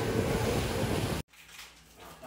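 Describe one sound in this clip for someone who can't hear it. Waves splash loudly against a moving boat outdoors.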